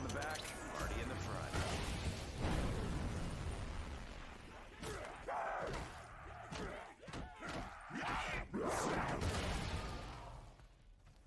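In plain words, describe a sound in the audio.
Gunfire and explosions blast in quick bursts.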